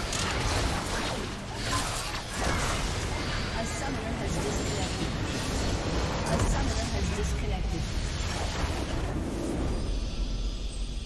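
Game spell effects crash and explode in a loud fight.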